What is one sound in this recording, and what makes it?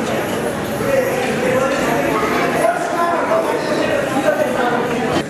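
A crowd of young men and women chatter and cheer.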